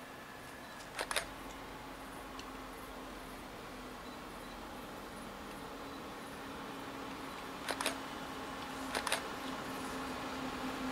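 A distant train approaches with a low steady hum.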